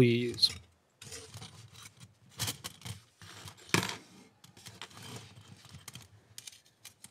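Small metal parts click and clink as they are fitted together.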